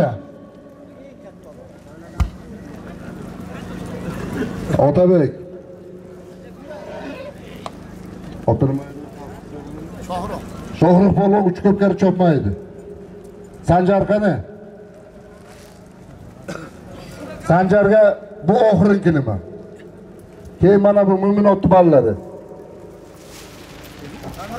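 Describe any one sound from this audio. A large crowd murmurs outdoors.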